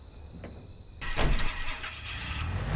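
A truck engine starts and rumbles steadily.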